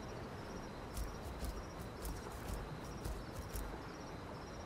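A creature's footsteps crunch on the forest floor.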